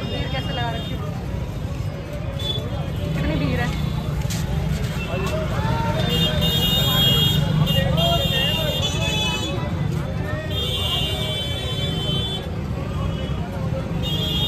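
Motorbike engines hum and pass by close.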